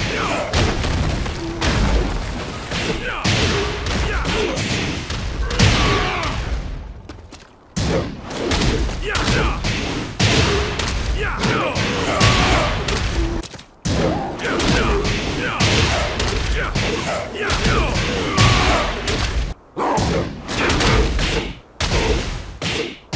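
Punches and kicks land with heavy, rapid thuds and smacks.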